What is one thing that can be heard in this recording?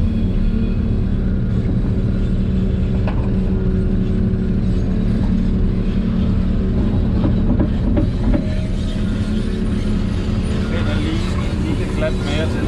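A diesel engine drones steadily, heard from inside a cab.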